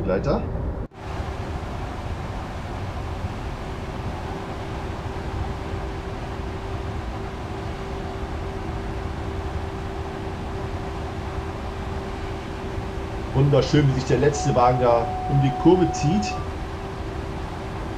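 An electric locomotive hums steadily as it runs.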